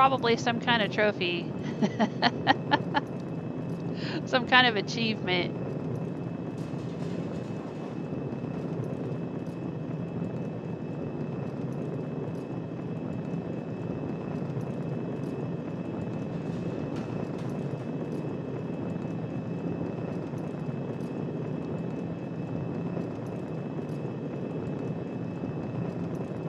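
A machine hums with a low, steady electrical drone.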